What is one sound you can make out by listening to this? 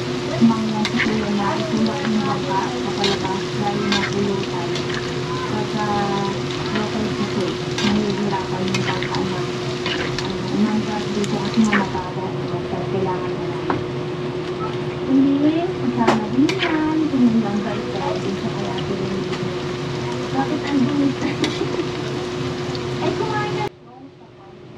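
A metal spatula scrapes and clinks against a metal pan.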